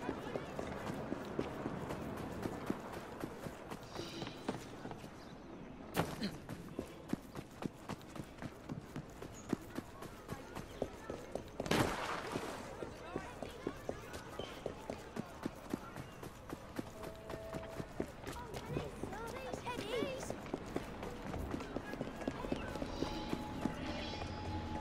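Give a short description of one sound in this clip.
Footsteps run quickly over stone and dirt.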